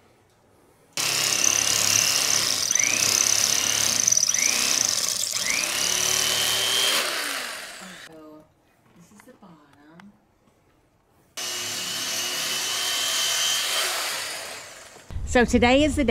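An electric carving knife whirs loudly while cutting through foam.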